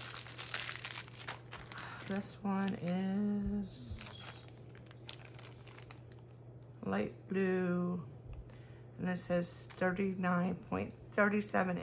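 Plastic packaging crinkles and rustles as hands handle it.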